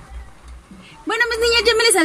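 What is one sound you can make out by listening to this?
A young woman speaks cheerfully close to the microphone.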